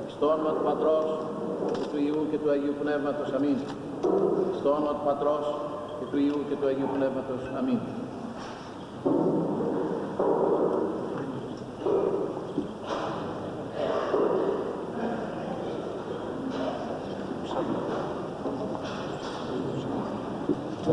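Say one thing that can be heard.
Elderly men chant together in steady, drawn-out tones.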